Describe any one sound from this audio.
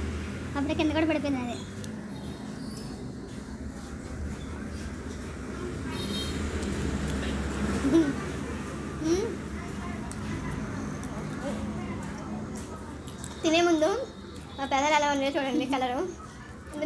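Spoons scrape and clink against food in bowls.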